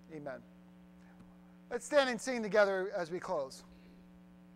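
A middle-aged man speaks through a microphone into a large hall, in short bursts.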